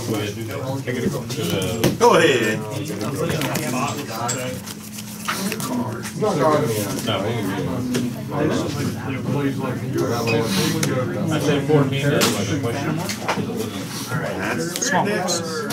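Playing cards slide and tap softly onto a table.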